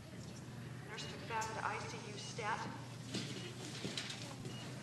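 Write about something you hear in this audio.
A woman speaks quietly at a distance.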